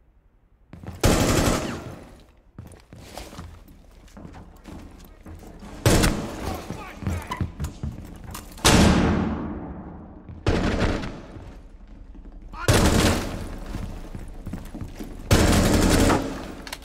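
Gunshots ring out loudly, a few at a time.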